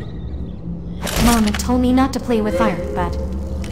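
Zombie-like creatures shriek and snarl close by.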